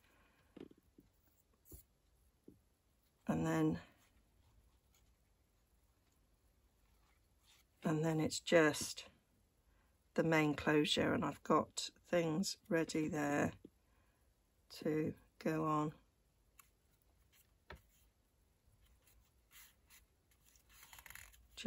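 Stiff paper rustles and creases as a card is handled and folded.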